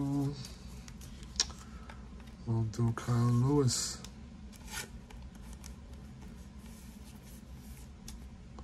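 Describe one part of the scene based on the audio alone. Trading cards rustle softly as a hand picks them up.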